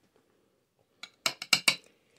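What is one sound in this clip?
A spoon scrapes and taps against a cup.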